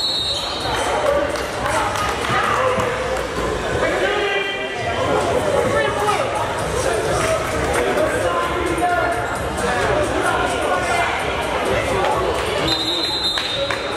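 Players' voices call out in a large echoing gym.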